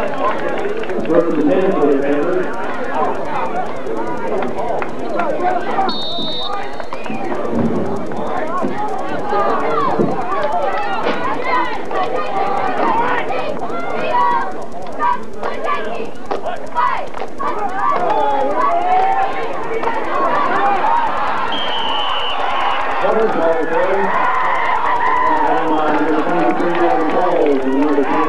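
Young players shout and call to each other nearby.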